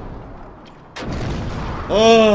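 A wall cracks apart with a sudden sharp crash.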